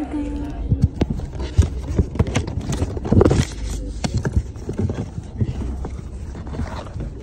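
Plastic toys knock and rub against each other close by.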